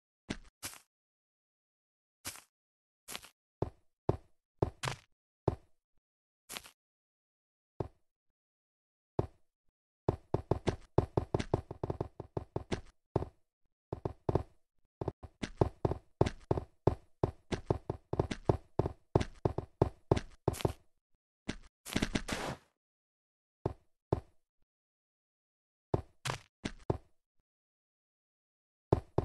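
Sharp game hit sounds land in quick bursts.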